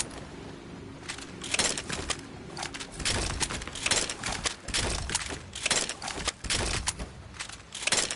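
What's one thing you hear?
Rockets fire and explode with sharp bangs.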